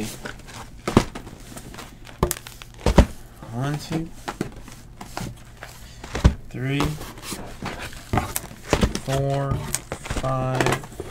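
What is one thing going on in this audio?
Cardboard boxes knock and slide against a table.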